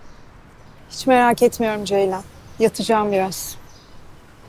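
Another young woman speaks clearly and calmly nearby.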